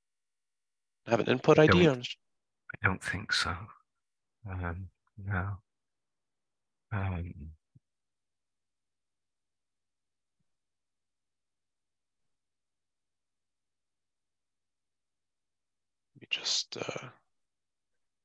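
A man speaks calmly into a close microphone, in short bursts.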